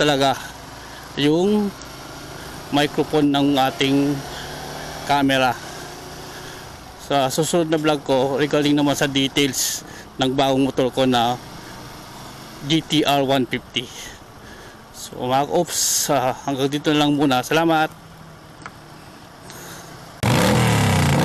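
A motor scooter engine hums steadily on the move.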